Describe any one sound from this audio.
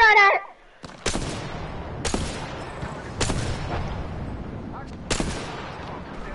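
Gunshots ring out one at a time.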